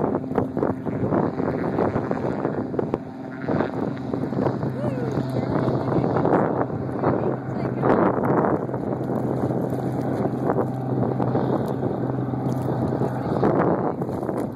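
A seaplane engine drones steadily across the water.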